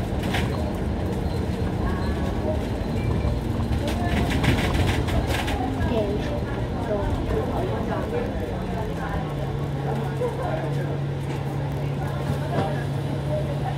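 City traffic drones along a busy street.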